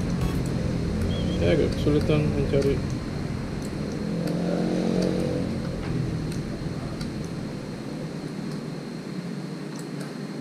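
Switches on a motorcycle handlebar click.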